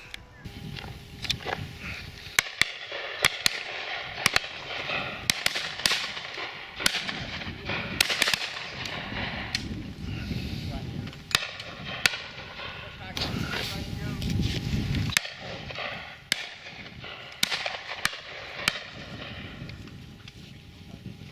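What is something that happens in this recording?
Shotguns fire repeatedly in the distance, echoing across open country.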